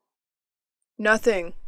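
A man answers calmly in a close voice.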